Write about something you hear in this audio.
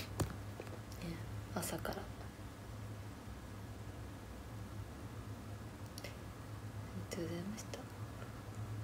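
A young woman speaks softly and briefly, close by.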